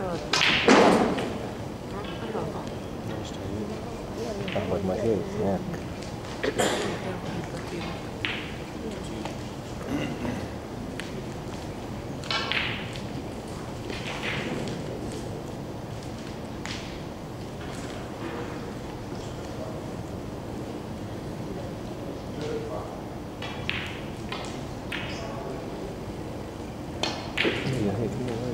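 Snooker balls knock together with hard clicks.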